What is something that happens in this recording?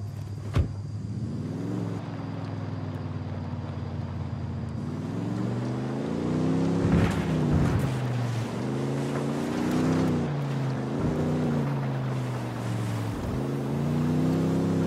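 A pickup truck engine revs up and down as the truck drives along a dirt track.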